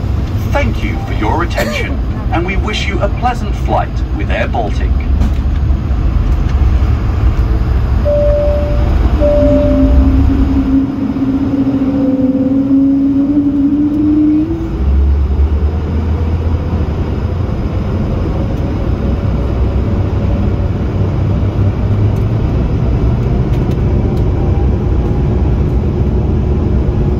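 Plane wheels rumble over the runway.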